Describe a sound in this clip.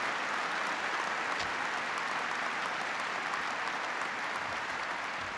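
A large crowd applauds in a big echoing hall.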